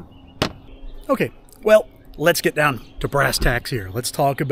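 A man talks with animation, close to the microphone.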